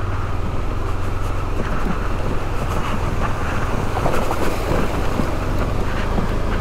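Tyres crunch over a rough gravel road.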